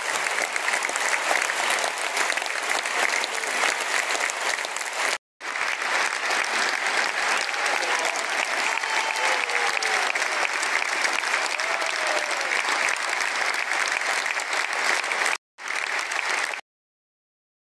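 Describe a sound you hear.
A large crowd applauds loudly and steadily in a big echoing hall.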